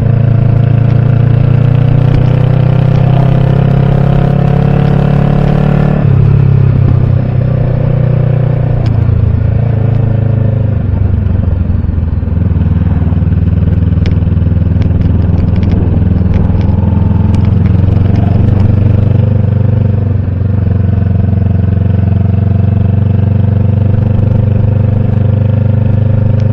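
A motorcycle engine hums steadily up close, its pitch shifting with the throttle.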